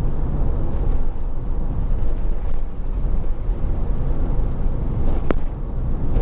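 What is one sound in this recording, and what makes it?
A car rolls along a street with a steady low rumble.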